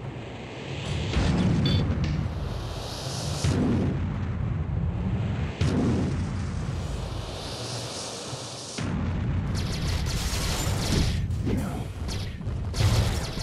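Heavy footsteps thud and pound on pavement as a giant runs.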